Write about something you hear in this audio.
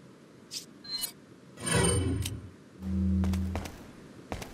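Menu blips and clicks sound briefly.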